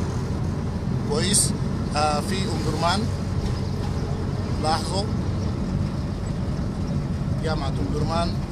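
A car engine hums and tyres rumble steadily on the road from inside a moving vehicle.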